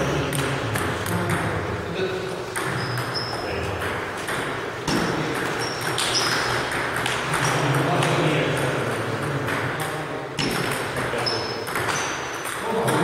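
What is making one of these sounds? Ping pong balls click on tables and paddles in a large echoing hall.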